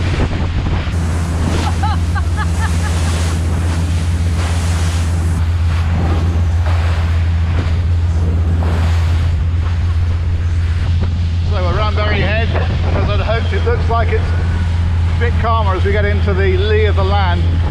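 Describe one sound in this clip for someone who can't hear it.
Water rushes and splashes against a speeding boat's hull.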